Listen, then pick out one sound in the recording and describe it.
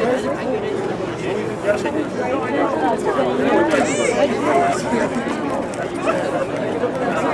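A school jazz band plays a tune outdoors.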